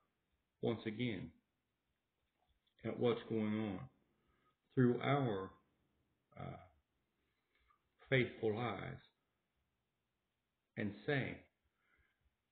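A middle-aged man speaks calmly and close up in short phrases with pauses.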